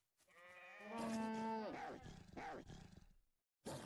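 A wolf snarls while attacking.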